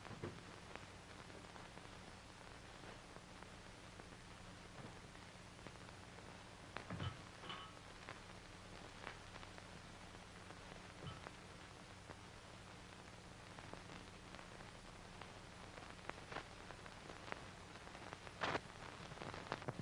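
A man rustles bedclothes on a bed.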